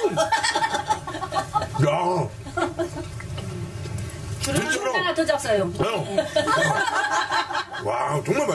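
A middle-aged man talks animatedly up close.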